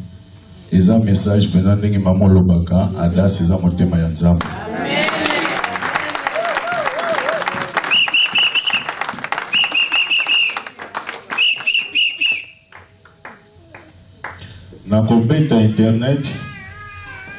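A man speaks loudly through a microphone in an echoing room.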